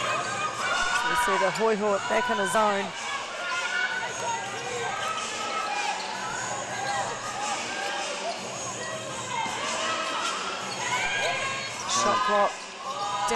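Sneakers squeak sharply on a hardwood court in an echoing hall.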